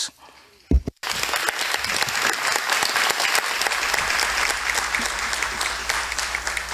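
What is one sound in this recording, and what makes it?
A large audience applauds in an echoing hall.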